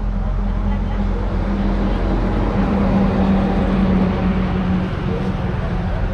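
A motorbike passes on the road with its engine humming.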